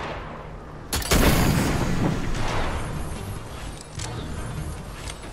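Wind rushes loudly in a video game.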